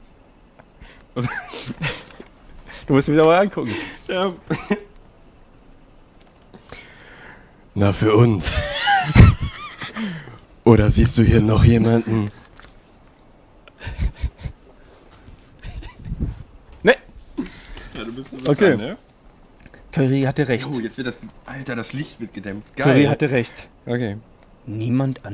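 Another young man talks and laughs nearby.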